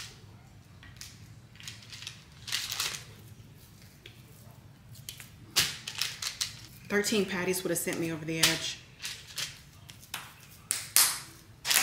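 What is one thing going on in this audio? Hands slap and pat raw ground meat with wet squishing sounds.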